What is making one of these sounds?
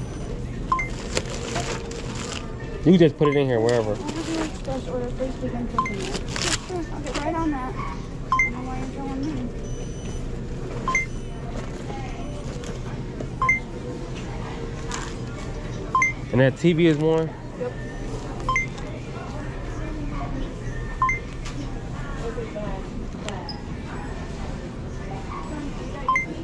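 A shopping cart rattles as it rolls.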